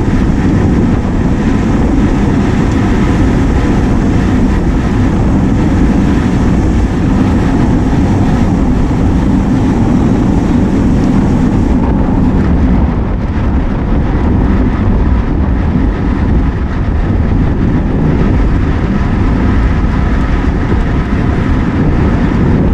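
Wind roars and buffets loudly against a moving bicycle's microphone.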